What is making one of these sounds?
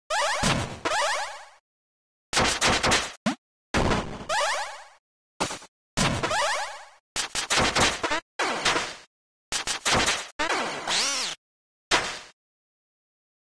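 Retro video game sound effects of shots and hits play in short, sharp bursts.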